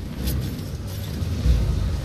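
A blade swooshes through the air.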